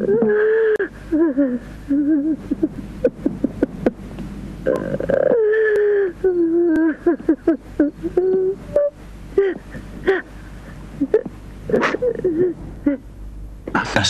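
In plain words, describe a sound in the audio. An elderly man speaks with feeling, close by.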